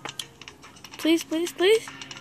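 A young boy speaks excitedly into a close microphone.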